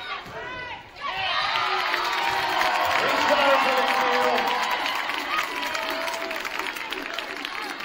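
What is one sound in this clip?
A crowd cheers loudly in a large echoing gym.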